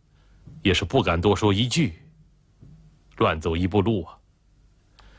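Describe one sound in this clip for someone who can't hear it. A middle-aged man speaks calmly and quietly, close by.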